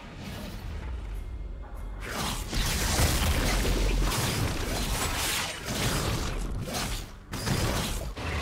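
Magic blasts and impacts crash during a fight with a large monster.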